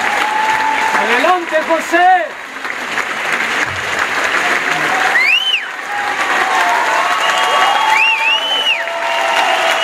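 A member of an audience whistles shrilly.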